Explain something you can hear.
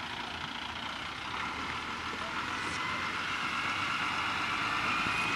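A fire engine's pump hums steadily.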